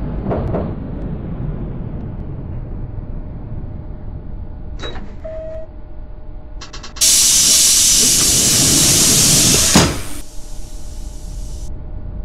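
A tram rumbles slowly along rails.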